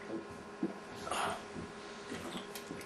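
A man gulps water from a plastic bottle.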